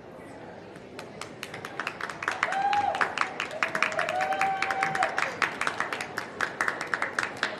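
An audience claps loudly in a large hall.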